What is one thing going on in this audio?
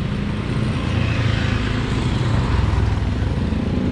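Motorcycle engines hum as they pass close by.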